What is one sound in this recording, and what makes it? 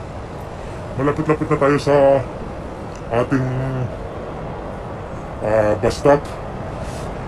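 A middle-aged man speaks in short bursts close to the microphone.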